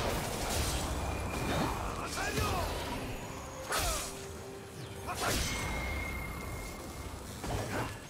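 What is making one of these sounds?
Game characters clash with hits and impacts.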